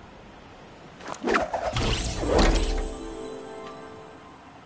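A loud whoosh sounds as a glider snaps open.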